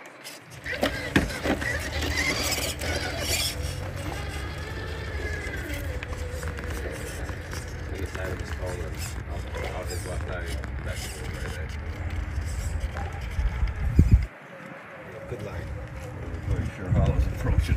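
Rubber tyres scrape and grind over rocks.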